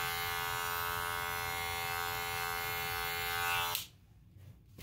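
Electric hair clippers buzz steadily up close, then switch off.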